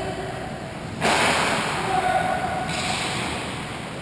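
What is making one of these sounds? Ice skates scrape sharply on ice close by.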